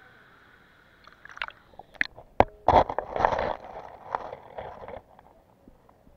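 Water splashes and gurgles loudly up close.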